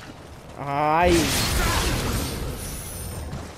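A sword swings and strikes a foe with a sharp hit.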